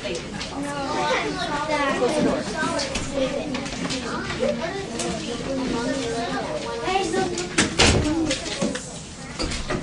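Young children chatter in the background.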